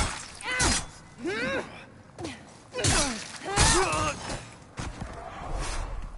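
Sword blows land with heavy thuds.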